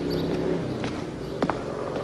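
Footsteps tread on a stone path.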